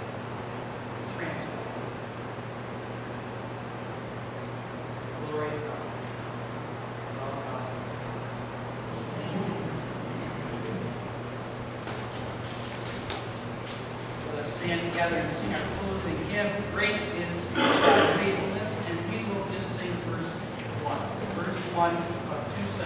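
A man speaks calmly into a microphone in a large, echoing room.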